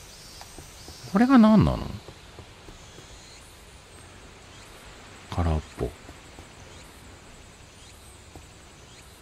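Small bare feet patter on stone as a boy runs.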